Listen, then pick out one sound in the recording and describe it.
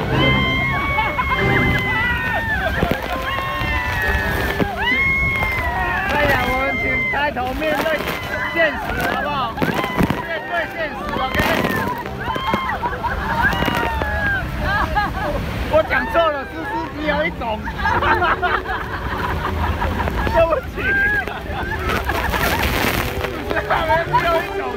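Young women and men scream and shout excitedly close by.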